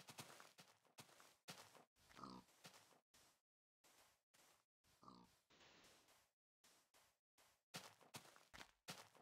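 Footsteps crunch steadily on sand and grass.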